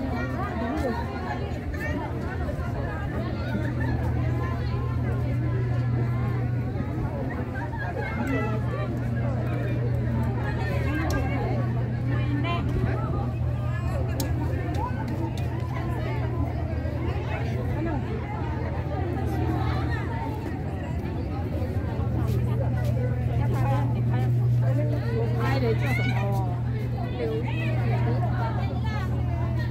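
A crowd of young women chatters nearby outdoors.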